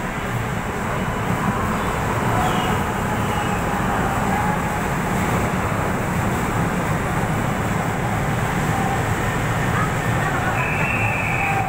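A train rumbles past with a steady low roar.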